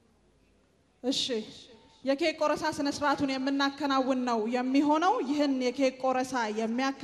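A woman speaks steadily into a microphone, heard through loudspeakers.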